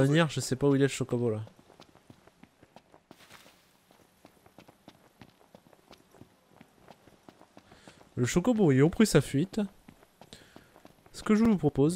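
Footsteps run quickly over dry, crunchy ground.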